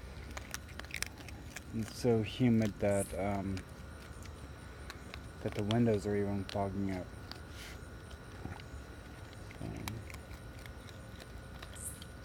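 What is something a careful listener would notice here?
Raccoons crunch on dry pet food.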